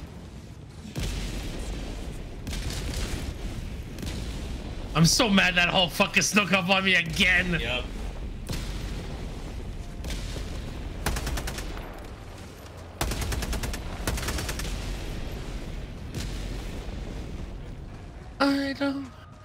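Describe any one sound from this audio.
Explosions boom and rumble in the distance.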